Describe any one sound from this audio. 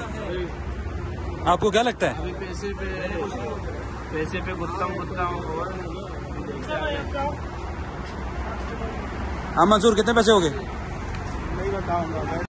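Several men talk at once nearby.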